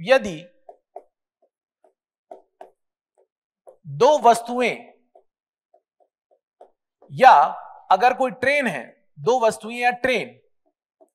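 A man speaks clearly and calmly in short bursts, close to the microphone.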